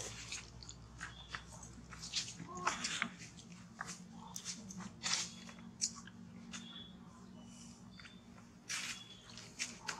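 A monkey chews and crunches food close by.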